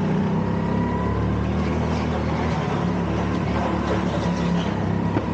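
A go-kart engine buzzes loudly and steadily close by.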